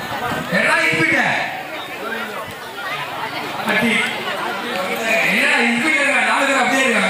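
A crowd of men murmurs in the background.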